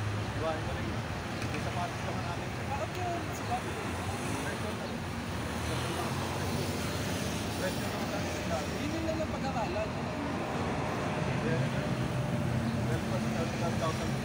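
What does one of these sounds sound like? Traffic hums steadily on a nearby road outdoors.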